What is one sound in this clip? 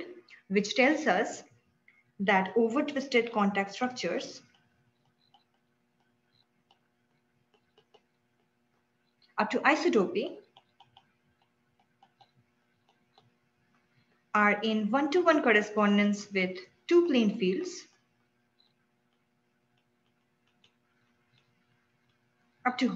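A young woman speaks calmly over a microphone, in short phrases with pauses.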